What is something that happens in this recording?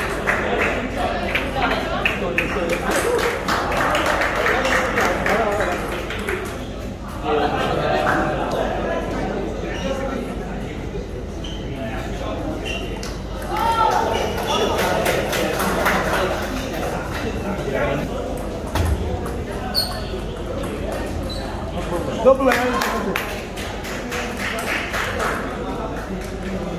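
A ping-pong ball clicks back and forth on paddles and a table.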